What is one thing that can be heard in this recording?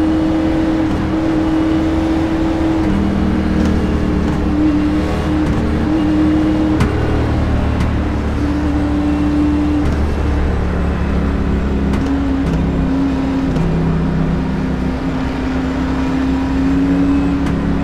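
A race car engine roars loudly at high speed, its pitch shifting slightly.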